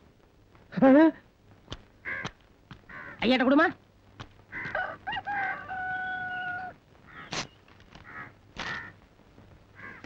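A middle-aged man talks loudly and with animation.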